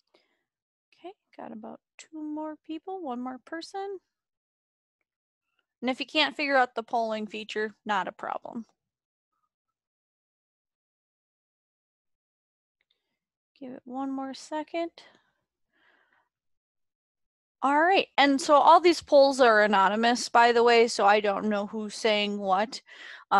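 A woman speaks casually over an online call.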